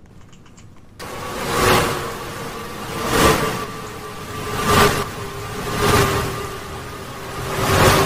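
Knocks thud loudly on a wooden door at a steady pace.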